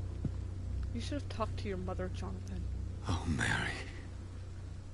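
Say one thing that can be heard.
A man speaks in a distressed voice.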